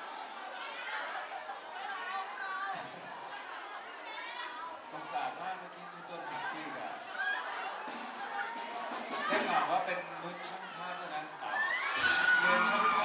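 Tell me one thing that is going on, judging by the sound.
A young man sings into a microphone through loudspeakers in an echoing room.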